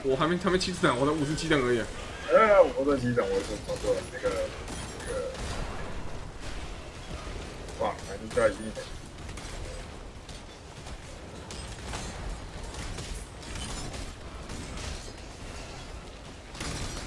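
Game sound effects crackle and clatter.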